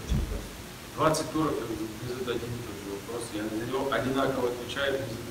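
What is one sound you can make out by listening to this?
A second man speaks in a relaxed tone into a microphone.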